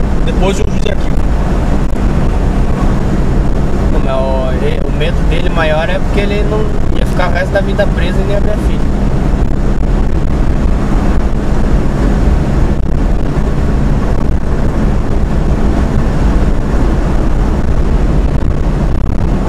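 A car engine hums and tyres roar steadily on the road from inside the car.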